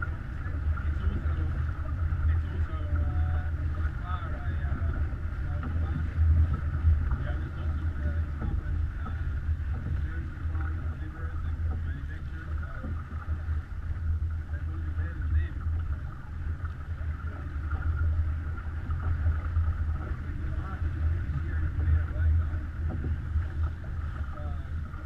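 Water rushes and splashes along a sailing boat's hull.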